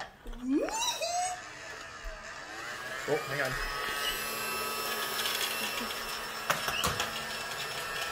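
A toy vacuum cleaner whirs with a steady electric hum.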